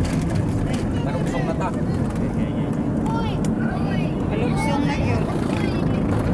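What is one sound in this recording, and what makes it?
A vehicle engine rumbles steadily from inside as the vehicle drives along a road.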